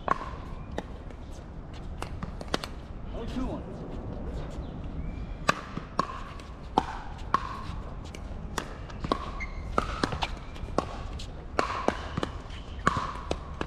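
Paddles hit a plastic ball with sharp hollow pops, over and over.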